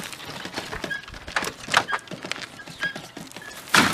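A wheelbarrow rattles as it is pushed over dirt.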